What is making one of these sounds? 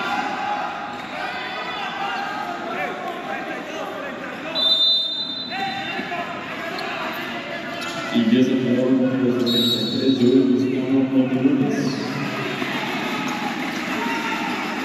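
Men talk and call out in a large echoing hall.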